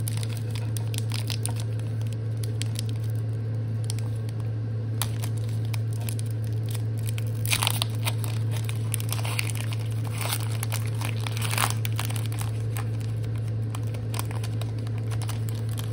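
A foil wrapper crinkles and tears as fingers pull it open.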